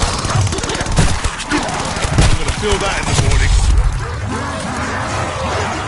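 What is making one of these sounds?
Heavy gunfire bursts rapidly and loudly.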